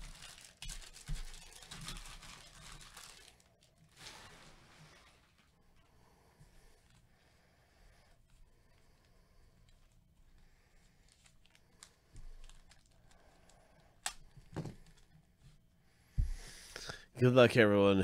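Foil packets crinkle and rustle as they are handled.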